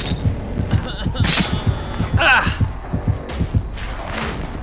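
Heavy footsteps thud on dirt.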